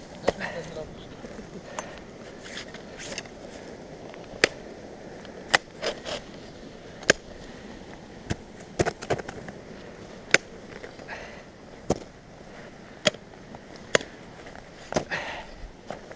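Ice axes are swung and strike into frozen ice with sharp thuds.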